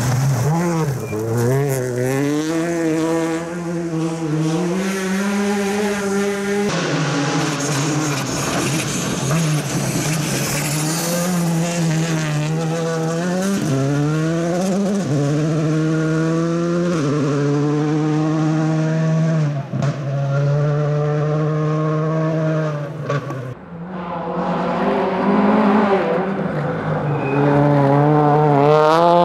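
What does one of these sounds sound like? Gravel crunches and sprays under a rally car's tyres.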